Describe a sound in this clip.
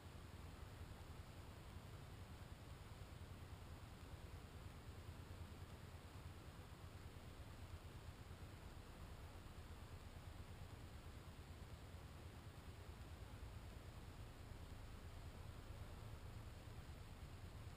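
Wind rumbles steadily outdoors, buffeting the microphone.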